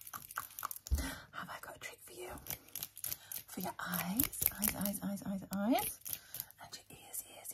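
A middle-aged woman talks with animation close to the microphone.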